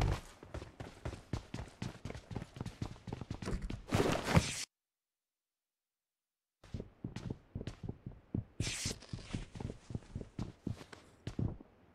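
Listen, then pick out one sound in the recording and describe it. Footsteps run quickly and steadily across a hard floor.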